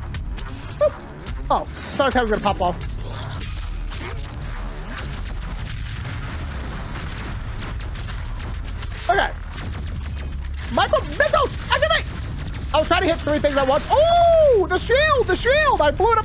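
Guns fire rapidly in a video game.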